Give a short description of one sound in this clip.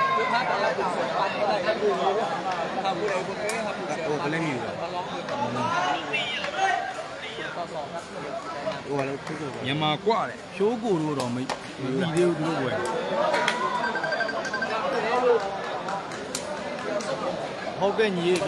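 A large crowd chatters and shouts, echoing under a roof.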